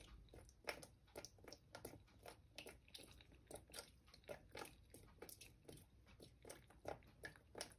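Foam fizzes and pops softly in a tray.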